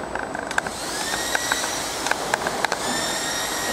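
A worker knocks and clicks on a machine.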